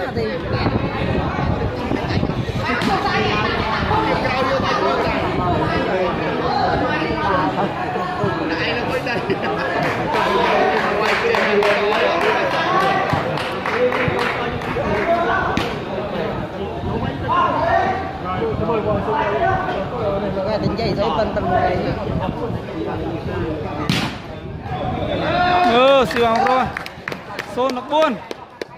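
A large crowd chatters and shouts under a big echoing roof.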